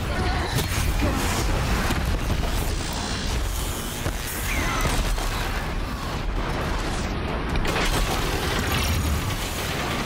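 Electric blasts crackle and hiss as a huge metal machine is hit.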